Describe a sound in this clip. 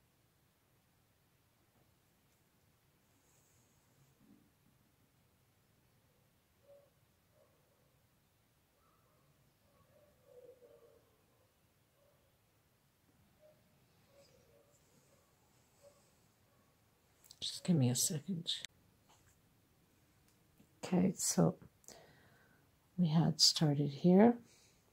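A crochet hook softly rustles through cotton thread.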